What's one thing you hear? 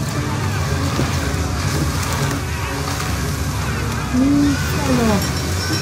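Heavy waves crash and surge against a wooden ship.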